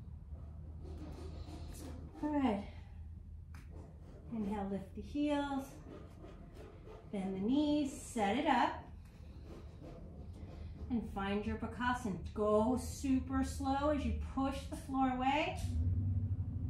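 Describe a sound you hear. A woman speaks calmly and clearly, close to the microphone.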